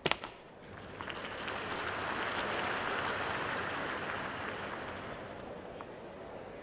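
A large crowd cheers and applauds, then fades.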